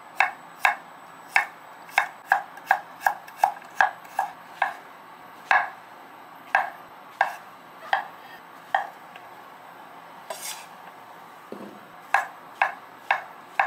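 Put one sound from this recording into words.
A knife taps sharply against a wooden cutting board as food is sliced.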